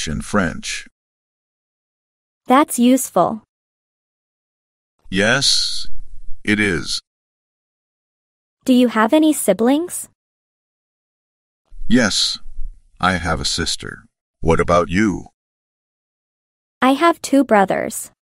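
A young woman speaks calmly and clearly, close up.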